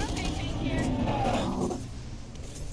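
A monstrous creature growls close by.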